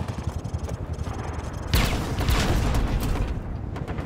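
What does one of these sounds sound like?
A helicopter's rotor thumps nearby.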